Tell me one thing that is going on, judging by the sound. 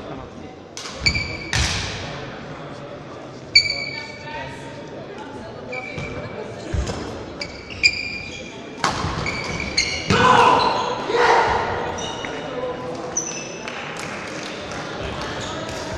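A shuttlecock is struck with rackets, sharp pops echoing in a large hall.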